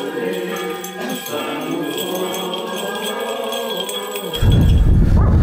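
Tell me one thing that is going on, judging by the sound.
A group of people chants a slow hymn in an echoing room.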